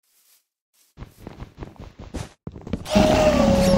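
A block crumbles as it is broken with rapid scraping taps.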